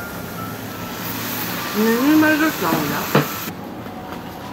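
Meat sizzles on a hot grill.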